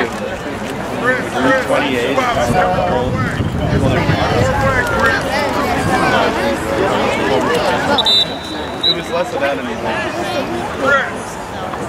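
Several young men shout and call out across an open field.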